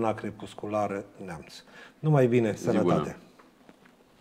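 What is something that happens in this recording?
An older man speaks calmly into a microphone.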